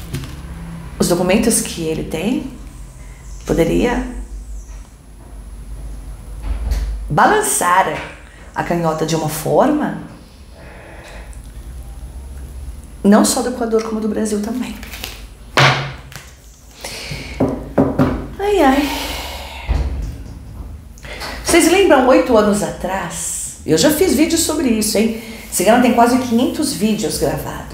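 A woman talks calmly and expressively close to a microphone.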